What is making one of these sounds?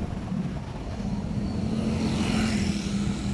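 A car engine hums just ahead at low speed.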